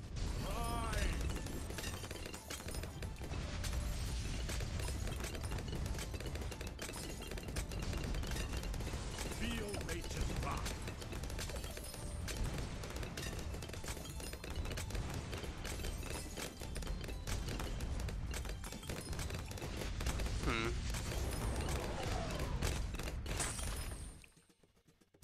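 Game sound effects pop and blast rapidly and without a break.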